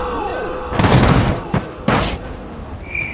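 A car crashes heavily onto the ground.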